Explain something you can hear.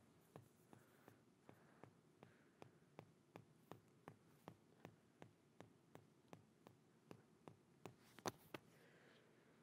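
A man snaps his fingers in a quick, steady rhythm.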